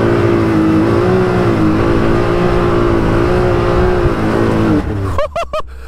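An off-road buggy engine roars loudly at high revs.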